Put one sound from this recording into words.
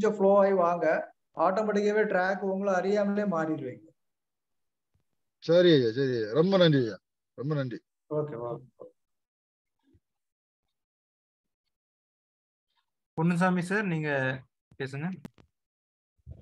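A middle-aged man speaks calmly in bursts through an online call, with long pauses.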